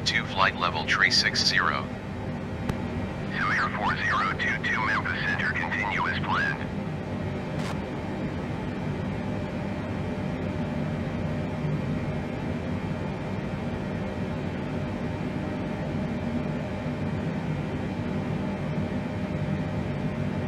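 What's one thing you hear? A jet's engines drone steadily from inside the cockpit.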